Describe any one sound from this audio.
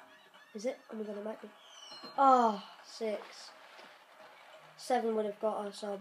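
Dice rattle and clatter as they roll.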